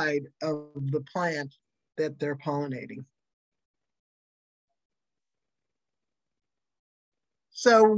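An elderly woman speaks calmly through a microphone, as if in an online call.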